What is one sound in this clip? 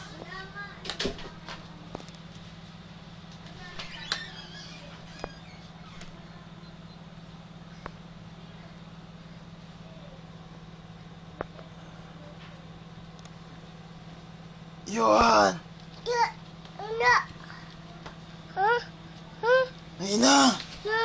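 A young child shouts and squeals playfully close by.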